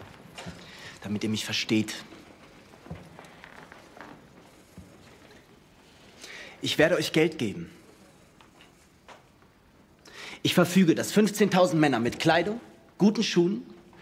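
A young man speaks tensely, close by.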